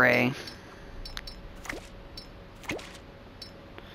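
A game menu blips softly as a selection moves.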